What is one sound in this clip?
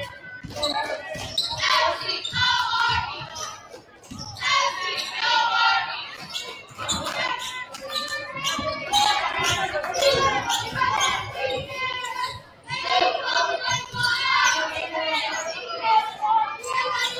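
A basketball bounces on a hard wooden court.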